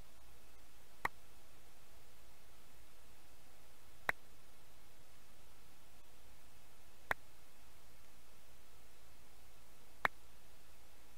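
Short, soft clicks sound every few seconds.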